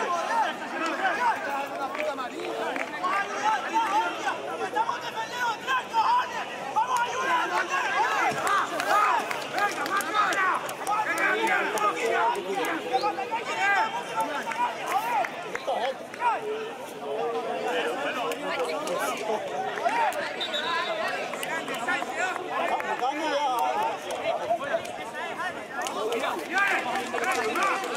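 Young players shout to each other across an open pitch in the distance.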